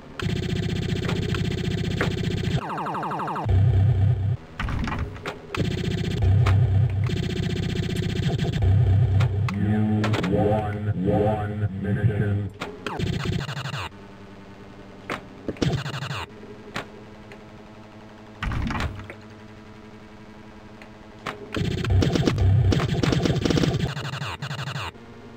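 Pinball bumpers ding and flippers clack.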